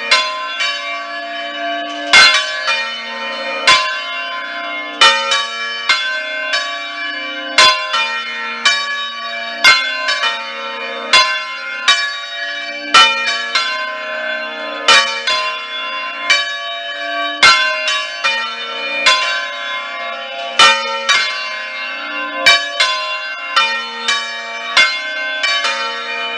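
Large church bells swing and ring out loudly in a rapid, overlapping peal, each stroke ringing on.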